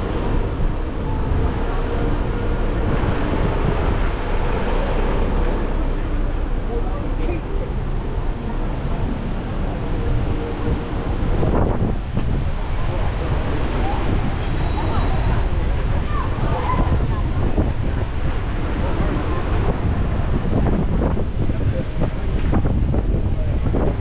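City traffic rumbles steadily along a busy street outdoors.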